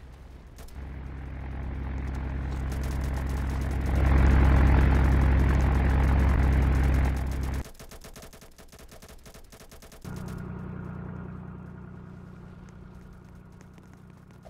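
A propeller plane's engine drones steadily up close.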